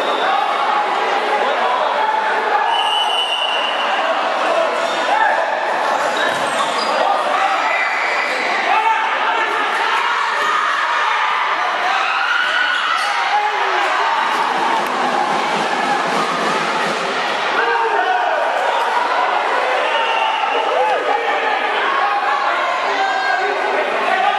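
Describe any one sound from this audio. A crowd of spectators chatters and cheers loudly in a large echoing hall.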